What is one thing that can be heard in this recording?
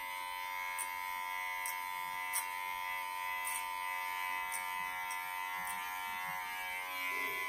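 Clipper blades snip through hair with soft crackles.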